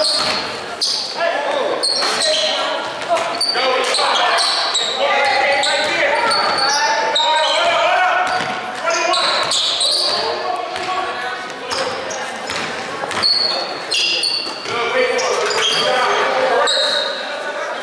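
A crowd of young spectators shouts and cheers in an echoing gym.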